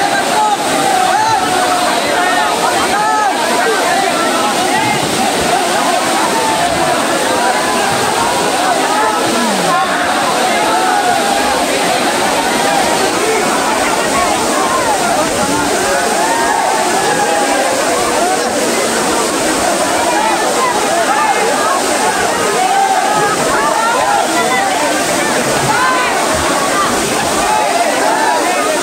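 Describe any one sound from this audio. A large crowd of young men shouts and cheers excitedly nearby.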